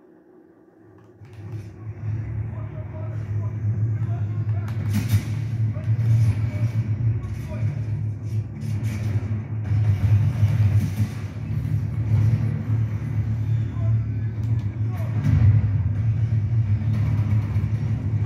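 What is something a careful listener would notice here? A video game's low, rumbling sound plays through a television loudspeaker.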